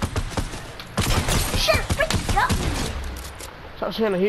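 Gunshots fire in a video game.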